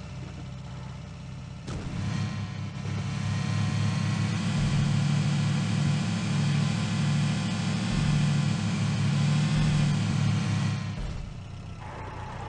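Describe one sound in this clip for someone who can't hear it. A jeep engine rumbles and revs as the vehicle drives over rough ground.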